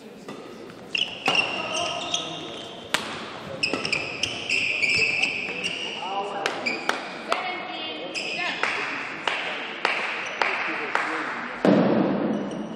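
Badminton rackets strike a shuttlecock in a quick rally.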